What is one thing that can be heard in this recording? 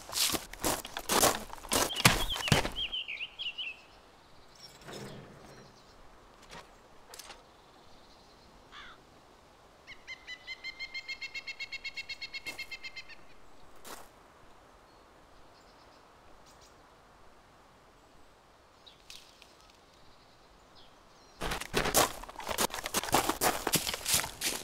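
Footsteps tread steadily on dirt and gravel.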